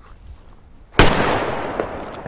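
A rifle fires a single sharp shot.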